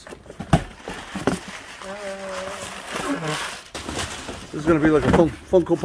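Paper packing rustles and crinkles.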